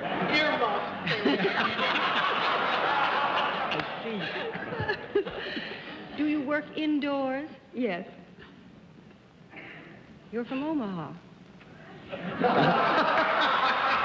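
A crowd laughs loudly.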